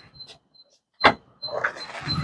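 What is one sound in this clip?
A car's boot latch clicks open.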